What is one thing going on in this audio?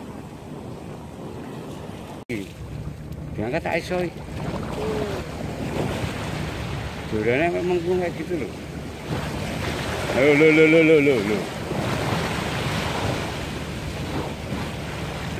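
Waves splash and wash against the shore.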